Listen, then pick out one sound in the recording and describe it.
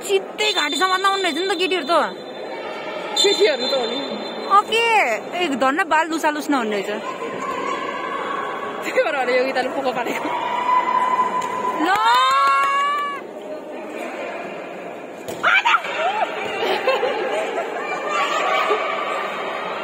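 A crowd of young spectators cheers and shouts loudly in a large echoing hall.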